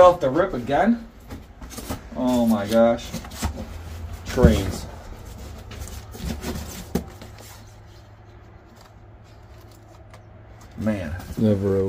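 Cardboard and foam packaging rustle and scrape as they are handled.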